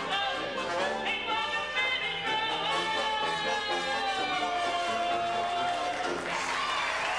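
A small brass band with a clarinet plays a lively tune.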